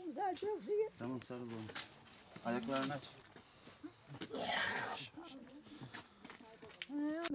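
An elderly woman talks close by.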